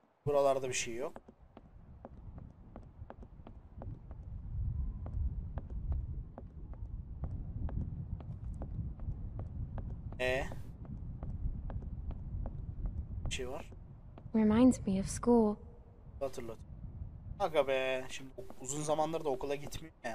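A young man talks into a close microphone, casually and in short bursts.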